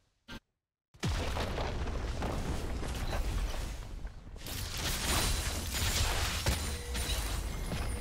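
Game sound effects of spells and attacks clash and explode.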